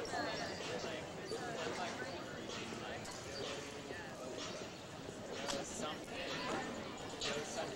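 Young men talk casually nearby outdoors.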